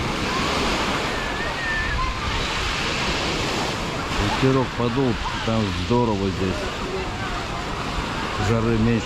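Small waves wash gently onto a pebble shore.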